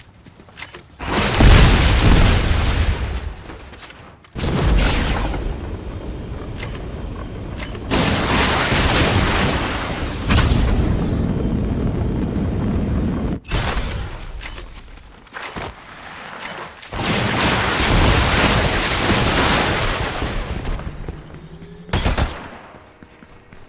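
A jetpack roars in loud bursts of rushing thrust.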